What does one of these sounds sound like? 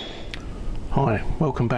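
A middle-aged man speaks calmly, close to a microphone.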